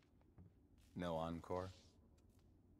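A man speaks.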